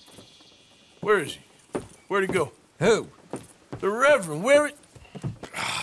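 A man speaks nearby in a calm, questioning voice.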